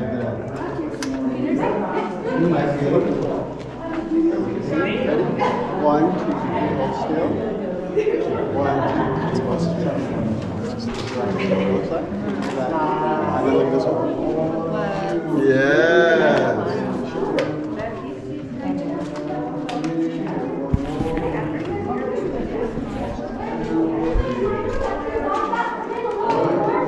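A crowd of men, women and children chatter nearby, echoing off rock walls.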